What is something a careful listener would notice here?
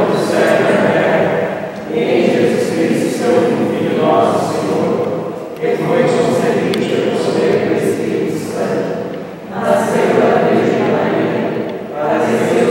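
A group of people sing together.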